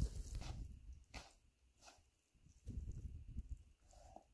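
Wet raw meat squelches and slaps as hands handle it.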